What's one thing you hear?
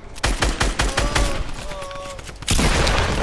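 Rapid gunshots fire close by.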